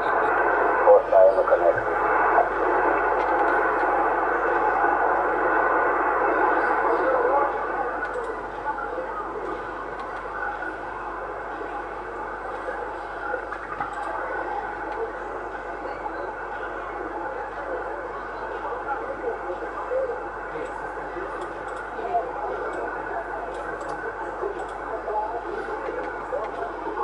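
A radio receiver hisses with crackling static through its loudspeaker.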